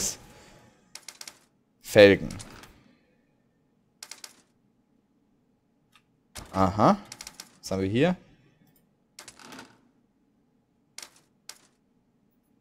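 Short game menu clicks sound as selections change.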